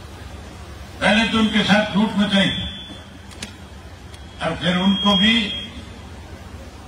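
A man shouts a speech through a loudspeaker.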